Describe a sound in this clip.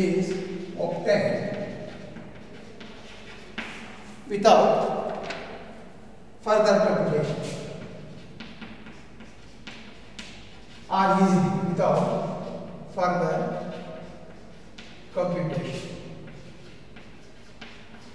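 A middle-aged man speaks slowly and deliberately, in short phrases, in an echoing room.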